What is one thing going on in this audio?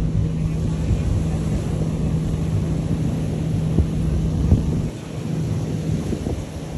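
Small waves wash gently onto a shore in the distance.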